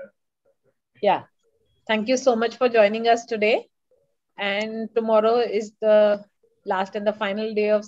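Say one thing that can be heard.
A woman speaks warmly over an online call.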